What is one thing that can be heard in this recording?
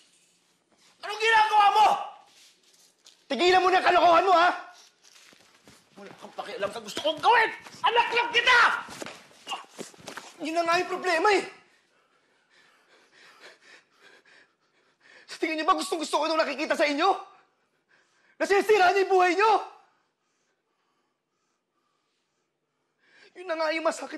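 Another man shouts back angrily, close by.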